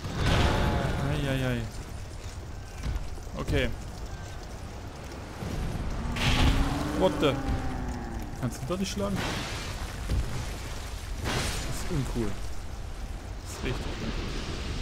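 A huge beast lets out deep, rumbling roars.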